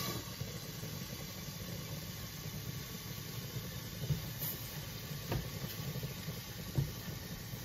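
Food sizzles softly in a covered pan.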